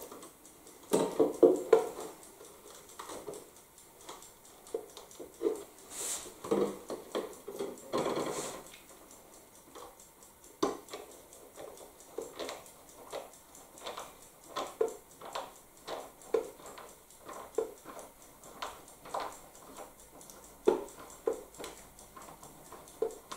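A man taps and clicks small parts against a wooden frame.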